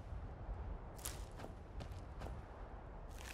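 A plant is plucked with a short rustle.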